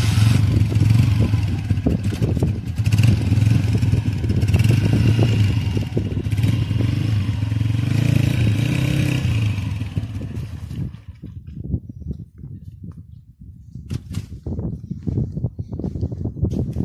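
A motorbike engine roars and labours loudly close by, then drops to a low sputter.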